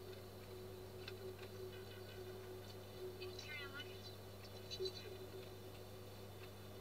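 A man speaks calmly, heard through a loudspeaker.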